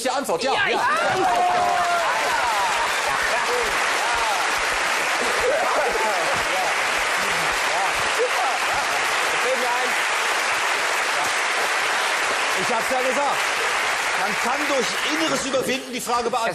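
A studio audience applauds loudly and cheers.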